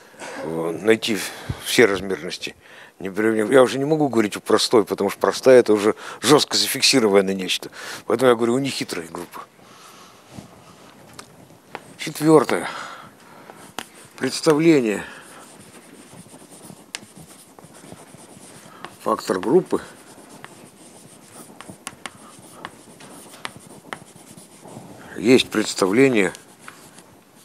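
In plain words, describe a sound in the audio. An elderly man lectures with animation in a large echoing room.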